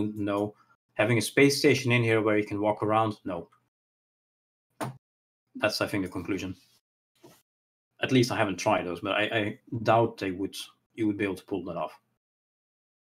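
A man talks calmly over an online call.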